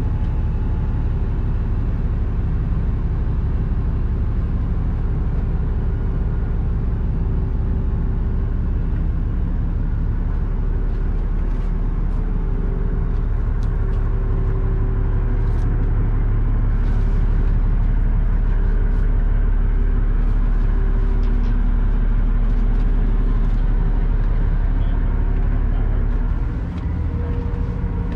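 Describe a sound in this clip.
A fan motor hums steadily and loudly, close by.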